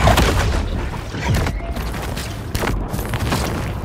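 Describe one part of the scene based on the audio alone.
An electric blast crackles and roars.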